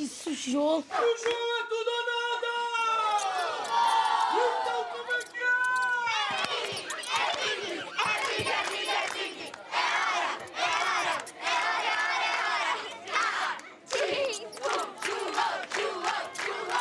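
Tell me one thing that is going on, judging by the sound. A group of children sings together.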